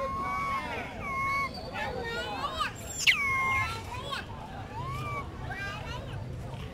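A young monkey squeals and chirps in high, wavering cries close by.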